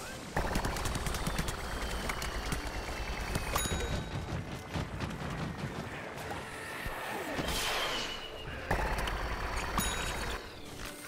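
Rapid cartoon gunfire pops and rattles in quick bursts.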